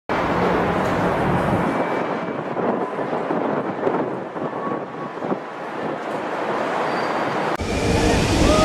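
Jet airliners roar low overhead as they come in to land.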